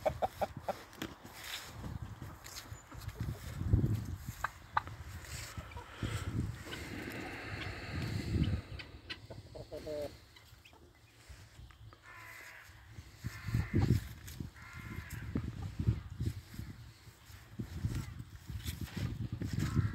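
Hens cluck and chatter close by.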